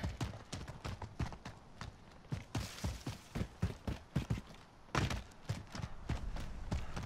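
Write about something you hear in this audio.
Quick footsteps thud and crunch over dry ground.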